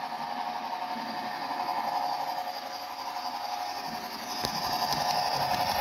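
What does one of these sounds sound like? A small electric train motor hums steadily, growing louder as it draws near.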